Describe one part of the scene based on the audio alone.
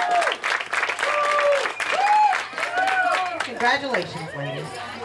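Young girls cheer and shout excitedly.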